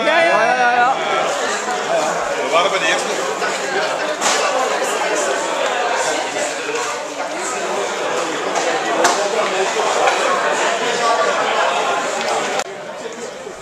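A group of women chat close by.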